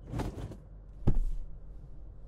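A heavy thud sounds beneath a car.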